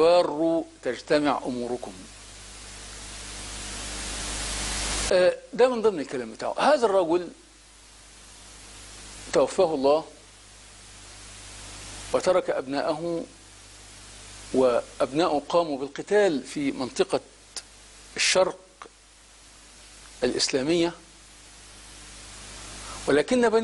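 A middle-aged man speaks emphatically into a close microphone, with long pauses.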